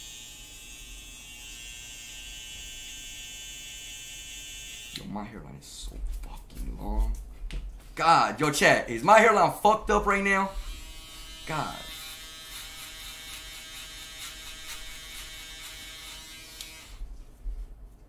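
Hair clippers buzz steadily close by.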